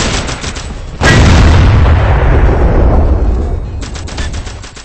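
A cannon blast explodes and rumbles away in a video game.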